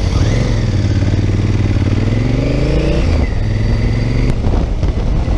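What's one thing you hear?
A motorcycle engine hums steadily, rising in pitch as it speeds up and dropping at a gear change.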